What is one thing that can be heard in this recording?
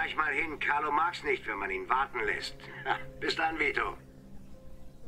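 A man speaks calmly into a telephone, close by.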